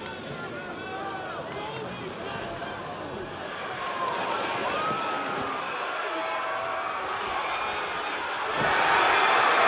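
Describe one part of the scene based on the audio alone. A large crowd cheers and whistles in a big echoing arena.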